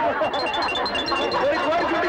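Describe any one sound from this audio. A hen clucks.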